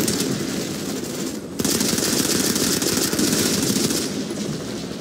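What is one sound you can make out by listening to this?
A video game automatic rifle fires rapid bursts.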